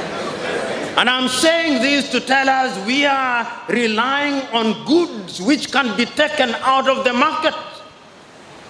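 A middle-aged man speaks with animation into a microphone in a large echoing hall.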